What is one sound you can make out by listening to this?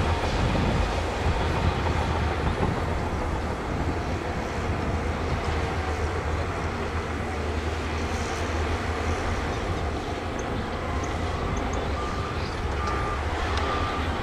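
A bulldozer pushes and scrapes dirt.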